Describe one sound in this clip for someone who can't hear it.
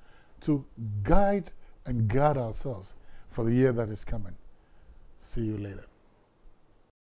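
An older man speaks calmly and clearly into a close microphone.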